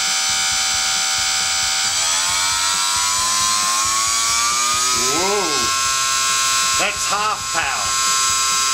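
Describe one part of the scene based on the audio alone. A small electric motor whines steadily and rises in pitch.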